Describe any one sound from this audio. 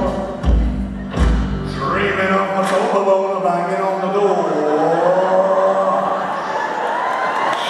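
A young man sings into a microphone over loudspeakers on a stage.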